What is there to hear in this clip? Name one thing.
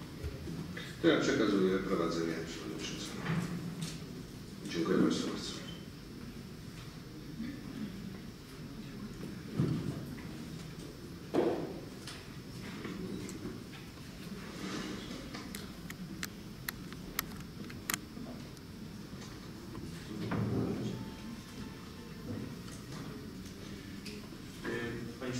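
An elderly man speaks into a microphone, heard through loudspeakers in an echoing hall.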